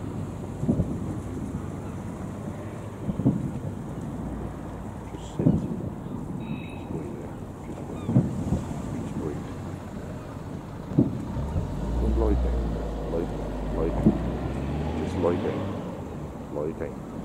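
Distant fireworks boom and thud, echoing across open water.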